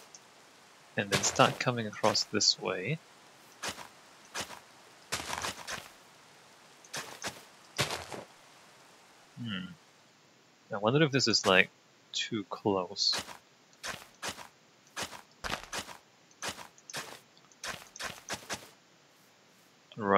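Soft crunching thuds of dirt being dug come again and again.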